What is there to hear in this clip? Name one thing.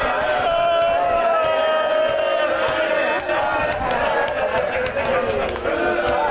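A crowd of men beats their chests in rhythm.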